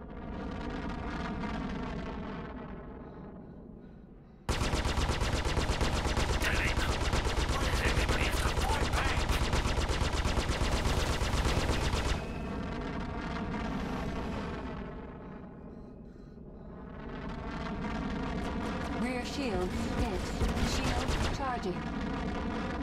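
A spaceship engine hums and roars in bursts.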